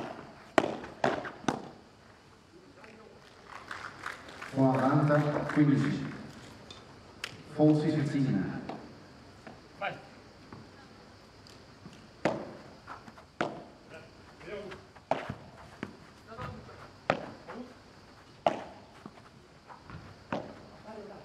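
A padel ball pops sharply off rackets in a quick rally.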